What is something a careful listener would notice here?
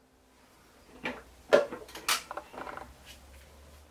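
A plastic lid clicks and knocks shut.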